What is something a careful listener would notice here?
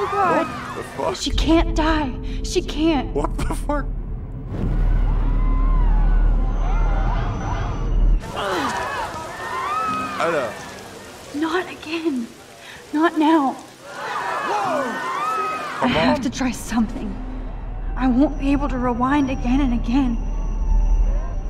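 A young woman speaks anxiously, close to a microphone.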